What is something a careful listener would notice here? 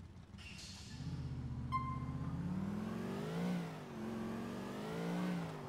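A car engine revs up and accelerates.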